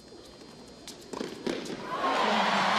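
A tennis ball is struck with a racket and bounces.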